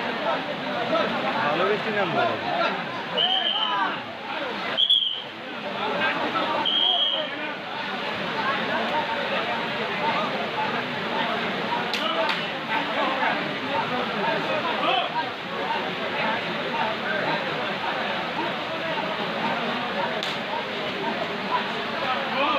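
A large crowd chatters and cheers outdoors.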